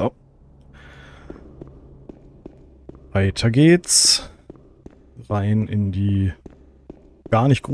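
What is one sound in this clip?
Footsteps scrape softly on a stone floor.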